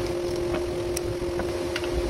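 A steel hex key clacks down onto a wooden bench.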